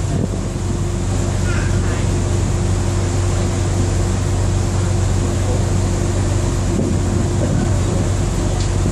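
Wind blows past outdoors.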